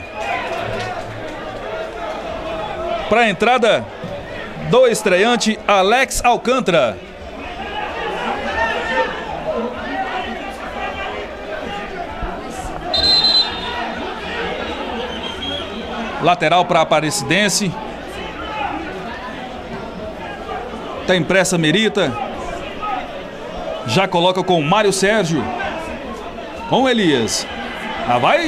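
A crowd murmurs and chatters in an open stadium.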